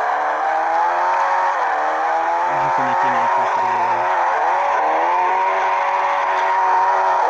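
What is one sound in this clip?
A car engine revs loudly, its pitch dipping briefly at each gear change.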